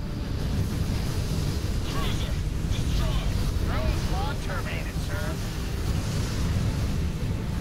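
A deep, steady rumble drones throughout.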